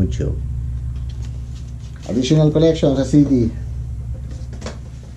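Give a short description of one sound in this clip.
Paper and cardboard rustle in hands.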